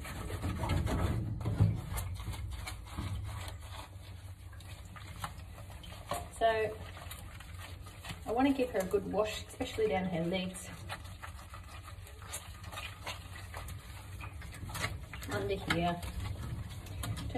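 Wet soapy fur squelches under rubbing hands.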